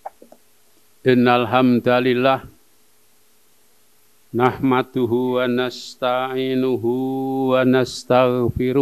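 An elderly man speaks into a microphone, heard through a loudspeaker, in a slow chanting voice.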